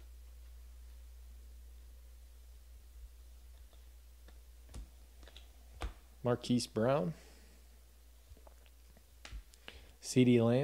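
Trading cards rustle and flick softly as they are shuffled by hand.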